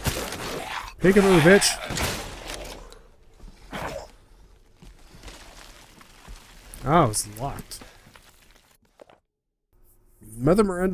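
A young man speaks with animation into a close microphone.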